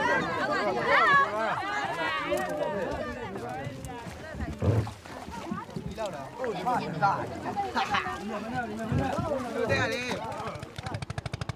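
A crowd of men and women chatter close by outdoors.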